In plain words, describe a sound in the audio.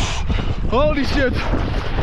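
Water splashes around a wader.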